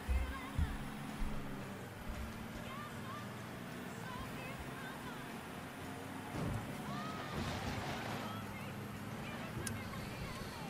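A truck engine hums steadily as the truck drives along.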